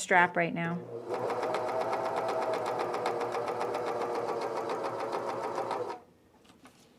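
A sewing machine runs with a steady whir.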